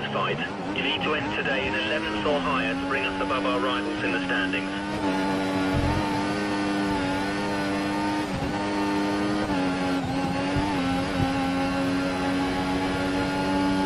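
A racing car engine screams at high revs, rising in pitch and dropping briefly with each gear change.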